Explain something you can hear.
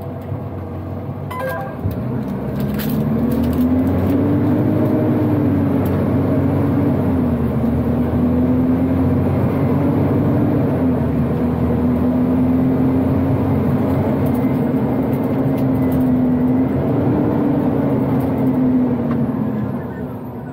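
A truck engine revs and drones from inside the cab.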